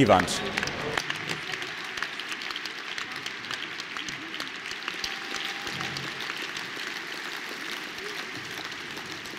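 A large crowd applauds in an echoing hall.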